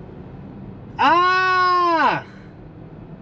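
A man makes a long, drawn-out vocal note.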